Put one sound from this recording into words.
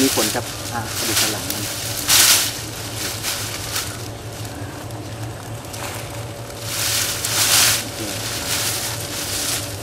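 Dry leaves and twigs rustle and crackle close by.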